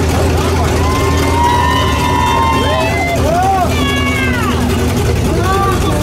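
A young man whoops and cheers outdoors.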